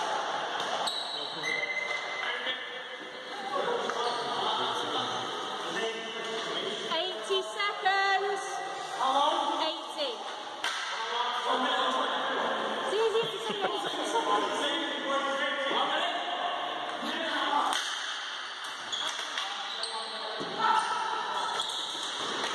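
Young players shout and call out to each other across an echoing hall.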